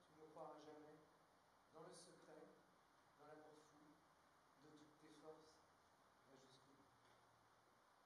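A man reads aloud calmly in a large echoing hall.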